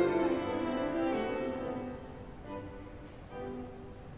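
A piano plays the last notes of a piece in a large echoing hall.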